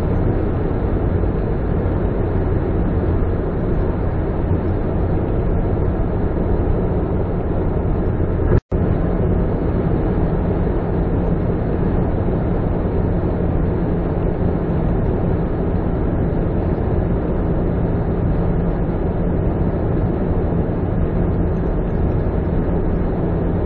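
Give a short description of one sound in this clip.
Road noise rumbles steadily inside a car driving fast on a highway.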